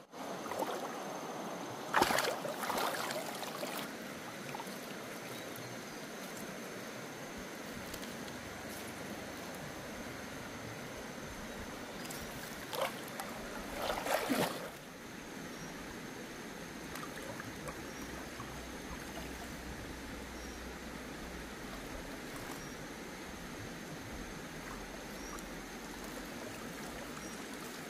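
A stream flows and babbles steadily outdoors.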